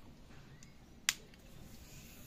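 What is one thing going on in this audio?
A plug clicks into a wall socket.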